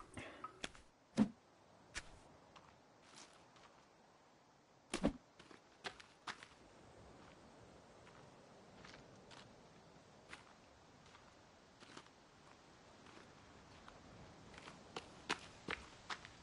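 Short knocks and clicks sound as small objects are picked up.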